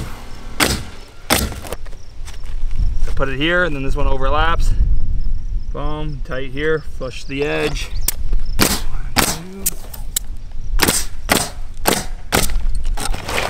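A pneumatic nail gun fires sharp bangs, one after another.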